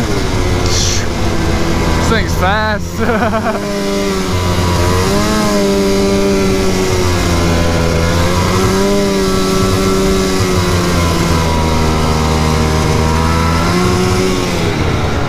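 A snowmobile engine drones loudly and steadily, rising and falling in pitch with the throttle.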